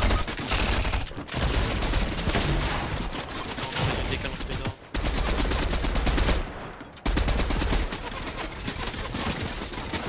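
Game building sounds clatter quickly.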